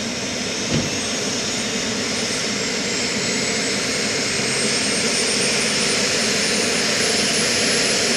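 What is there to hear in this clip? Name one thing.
Helicopter rotor blades begin to turn with a slow whooshing.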